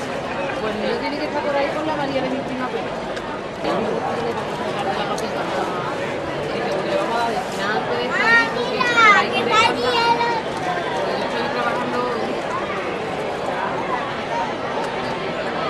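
A crowd of adults and children chatters all around outdoors.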